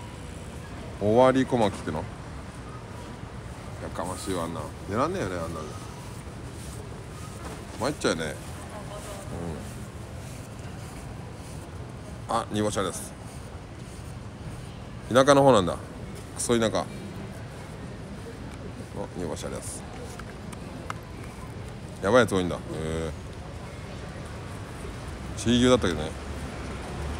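An older man laughs loudly nearby.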